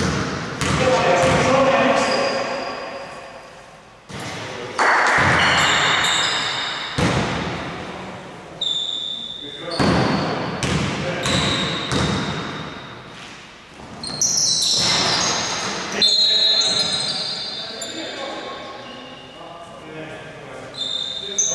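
A basketball bounces on a wooden floor, echoing in a large hall.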